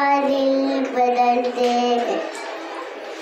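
A young girl sings a slow, drawn-out melody close to a microphone.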